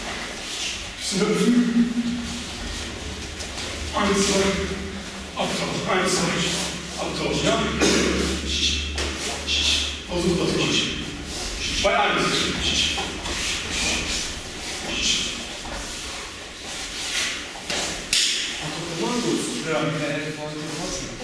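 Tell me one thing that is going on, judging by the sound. A man speaks with animation nearby, in an echoing room.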